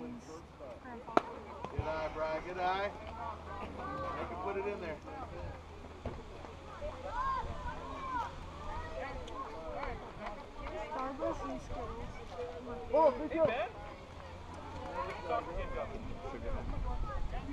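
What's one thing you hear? Children and adults shout and cheer outdoors.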